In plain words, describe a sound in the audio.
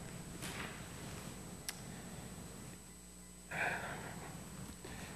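A man speaks quietly through a microphone in a large echoing room.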